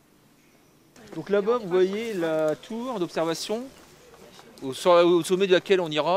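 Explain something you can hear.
An elderly man speaks clearly and with animation, close by, outdoors.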